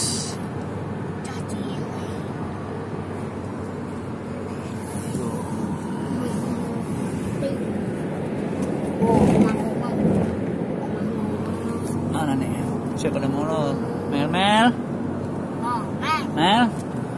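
A car's engine and tyres hum steadily on a highway.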